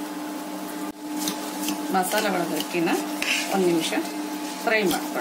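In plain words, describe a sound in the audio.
A metal spatula scrapes and stirs in a pot.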